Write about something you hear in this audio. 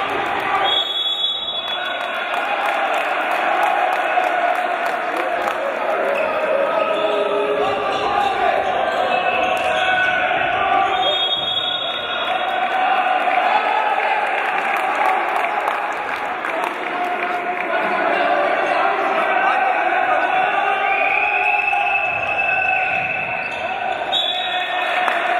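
A referee blows a whistle in short blasts.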